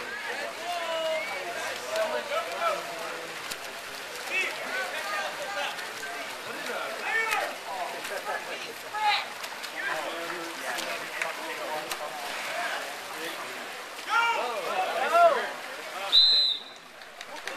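Swimmers splash in the water.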